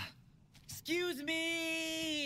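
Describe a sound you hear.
A young boy shouts excitedly.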